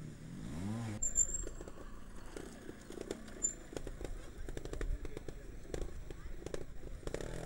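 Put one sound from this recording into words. A trials motorcycle engine putters and revs in short bursts.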